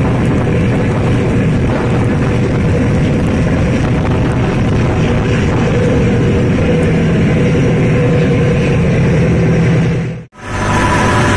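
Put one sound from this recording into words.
Wind and rain roar steadily outdoors.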